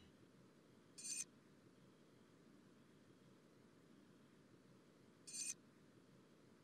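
A short bright chime sounds as a page turns.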